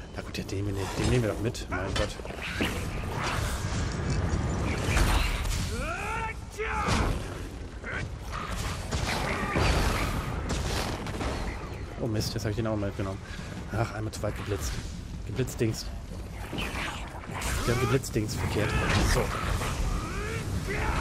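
Magic spells crackle and burst in quick blasts.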